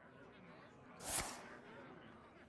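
A card lands with a short whoosh.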